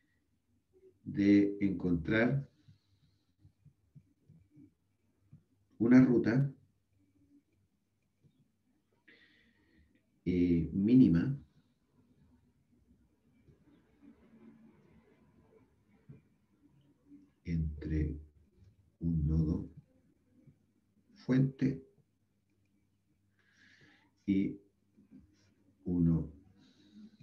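A young man speaks calmly and slowly through a microphone, in short phrases with pauses.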